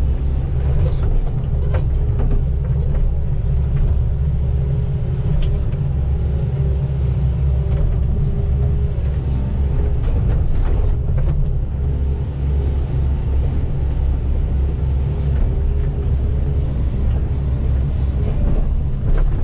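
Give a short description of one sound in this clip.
An excavator bucket scrapes and digs into soil.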